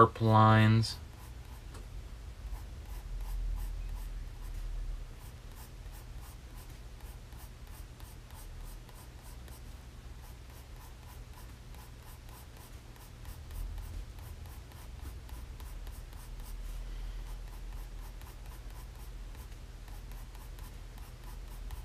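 A pencil scratches rapidly across paper in quick, steady strokes.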